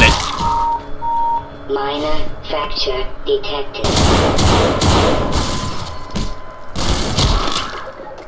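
A rifle fires sharp gunshots.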